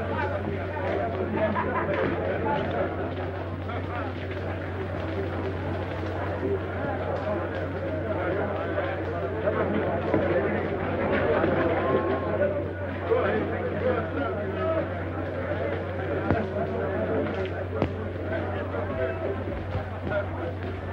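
A crowd of men murmurs and chatters close by.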